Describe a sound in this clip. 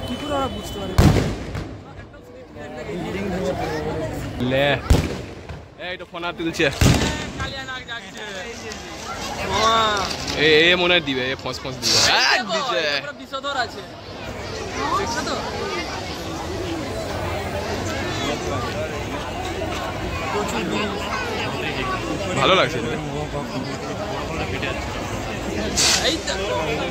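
Fireworks bang loudly outdoors.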